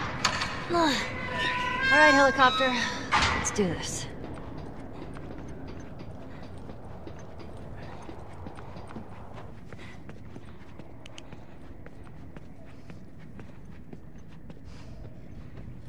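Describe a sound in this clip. Footsteps tread on metal steps and a hard floor.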